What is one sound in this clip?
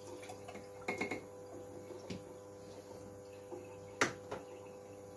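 A glass clinks against a hard countertop.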